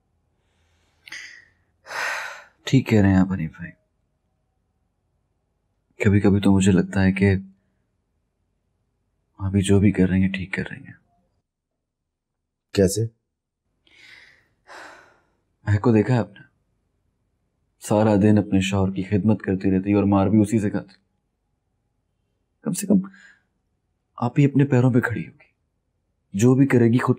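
A young man speaks calmly and softly, close by.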